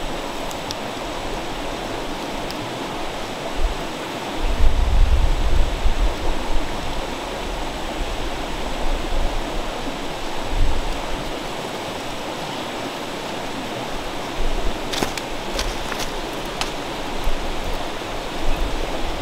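A stream flows and babbles steadily nearby.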